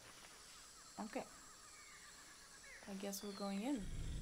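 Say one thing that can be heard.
A young woman speaks briefly, close to a microphone.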